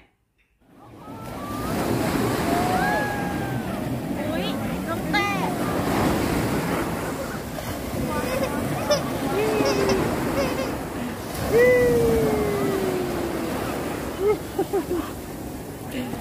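Waves wash onto a shore with a steady rush.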